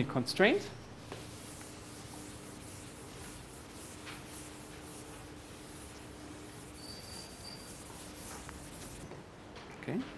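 A board eraser rubs across a chalkboard.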